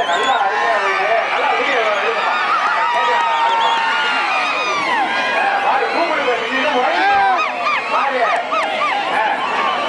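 A large crowd shouts, cheers and whistles loudly outdoors.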